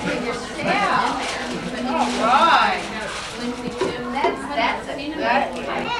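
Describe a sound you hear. Young children chatter and call out close by.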